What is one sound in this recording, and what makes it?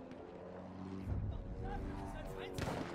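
An explosion rumbles in the distance.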